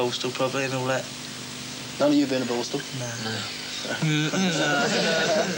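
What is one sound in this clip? A teenage boy talks casually, close by.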